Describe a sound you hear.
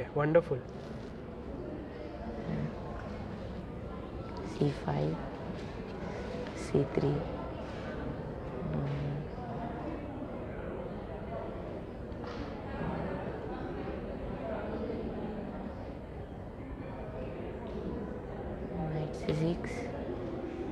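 A boy speaks softly nearby.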